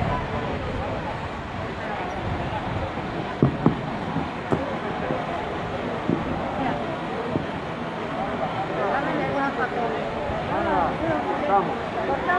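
A crowd of men and women chatters outdoors in a street.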